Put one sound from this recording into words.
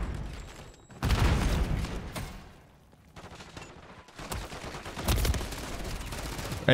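Gunshots fire rapidly in a video game.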